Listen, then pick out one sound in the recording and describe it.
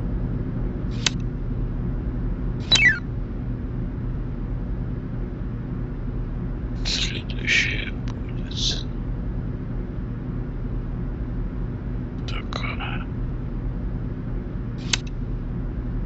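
Short chimes from a computer puzzle game sound as pieces are placed.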